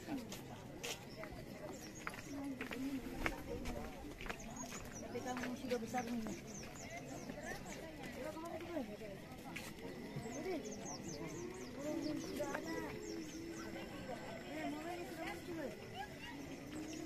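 A crowd of men and women chatter and call out nearby outdoors.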